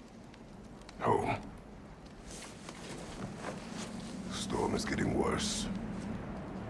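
A man speaks in a deep, low voice, calmly and briefly.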